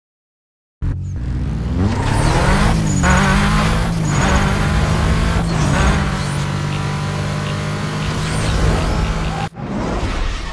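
A racing car engine roars loudly at high speed.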